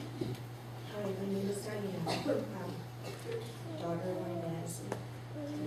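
A woman speaks calmly into a microphone over a loudspeaker in an echoing hall.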